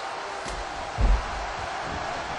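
A body thuds heavily onto an arena floor.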